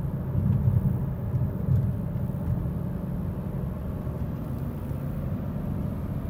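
A car engine hums low and steady from inside as the car drives along.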